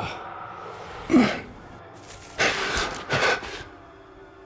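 A man groans in strain.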